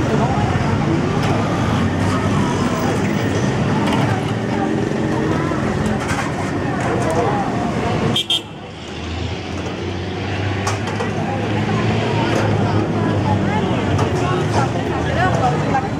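A crowd chatters all around.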